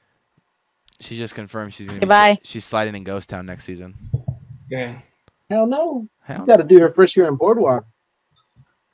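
A young man talks and laughs through a headset microphone on an online call.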